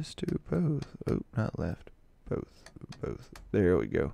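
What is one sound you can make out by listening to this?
A switch clicks into place.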